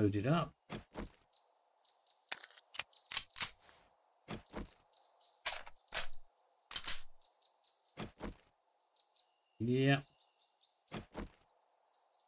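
Metal gear clicks and clanks as weapons are drawn and put away.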